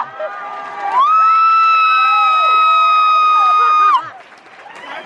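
A young woman whoops loudly close by.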